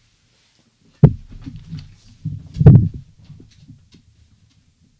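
A microphone is bumped and rattles as a man handles it.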